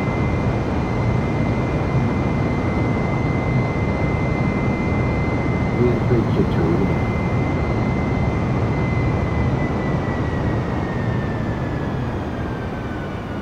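Jet engines roar steadily with a high whine.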